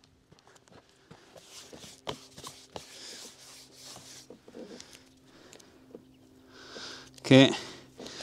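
A sticker crinkles as it is peeled off.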